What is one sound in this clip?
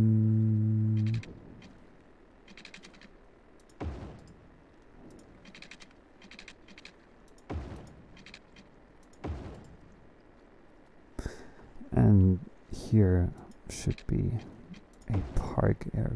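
Short clicks and pops sound as pieces are placed.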